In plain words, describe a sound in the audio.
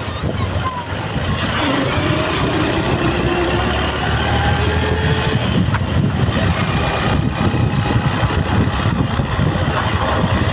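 Traffic rumbles steadily on a road.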